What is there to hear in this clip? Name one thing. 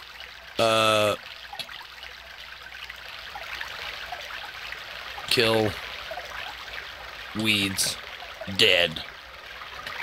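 A man speaks in short, drawn-out bursts close to a microphone.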